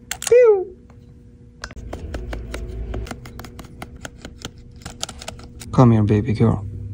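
Small metal parts click and tap.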